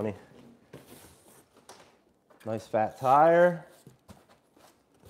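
Packing foam rustles and squeaks as hands handle it.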